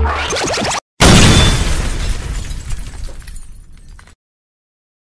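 A loud blast bursts and rumbles as it fades away.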